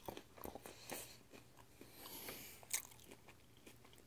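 A person chews crunchy food close to a microphone.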